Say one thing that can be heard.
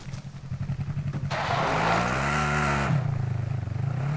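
A vehicle engine starts and revs up.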